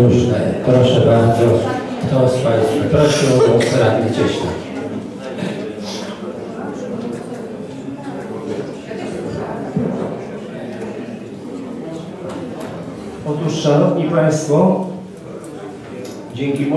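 A crowd of people murmurs in the background.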